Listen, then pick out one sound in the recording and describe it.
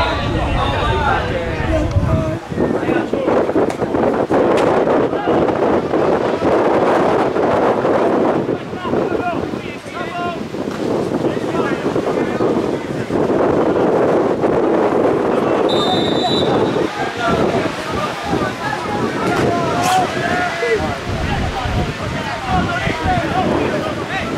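Men shout to one another outdoors.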